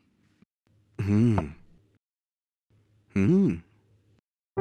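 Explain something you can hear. A young man speaks briefly in short replies.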